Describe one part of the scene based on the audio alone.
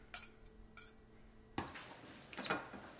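Forks scrape and clink on a plate.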